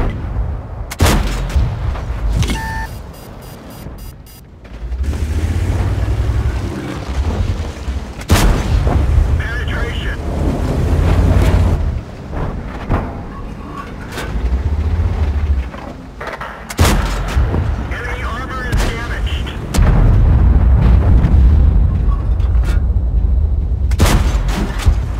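A tank cannon fires with loud, sharp booms.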